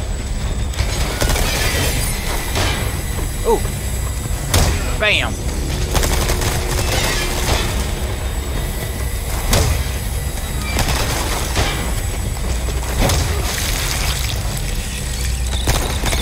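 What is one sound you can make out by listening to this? A pistol fires sharp shots in an echoing hall.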